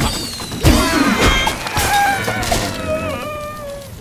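Wooden structures crash and tumble apart.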